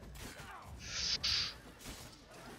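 A magical blast bursts with a whoosh.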